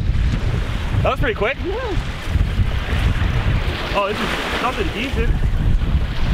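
A man exclaims excitedly close by.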